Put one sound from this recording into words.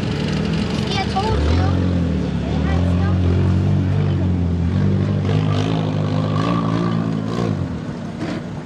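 A truck engine rumbles close by and revs steadily.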